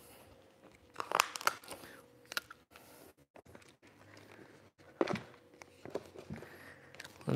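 Paper rustles and crinkles as it is lifted and laid down.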